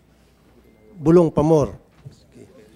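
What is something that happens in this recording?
A man calls out loudly and briefly through a microphone.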